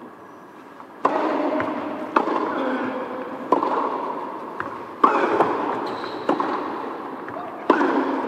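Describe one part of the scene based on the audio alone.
A tennis ball is struck back and forth with sharp pops of the rackets.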